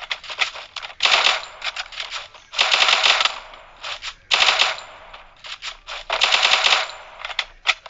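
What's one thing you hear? Rapid gunfire crackles in short bursts.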